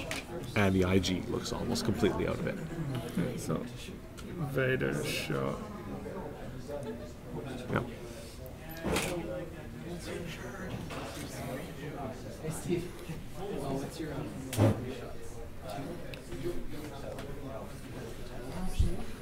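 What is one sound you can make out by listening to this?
A second young man answers calmly.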